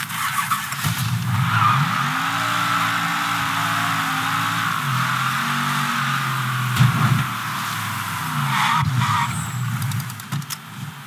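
A car engine roars as the car speeds up and then slows.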